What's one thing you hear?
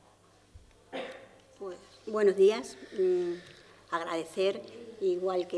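A middle-aged woman speaks with animation into a microphone.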